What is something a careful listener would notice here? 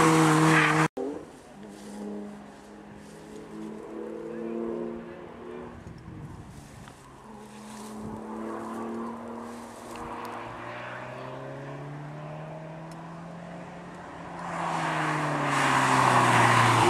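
A sports car's engine revs as the car races by.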